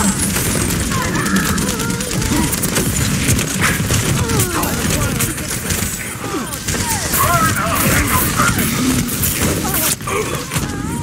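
Explosions and impacts crack and boom.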